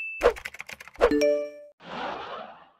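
A small bell rings and fades.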